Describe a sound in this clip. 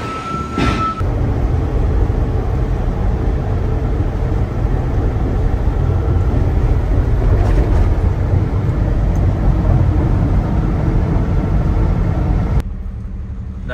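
A truck drives along at speed, rumbling steadily as heard from inside the cab.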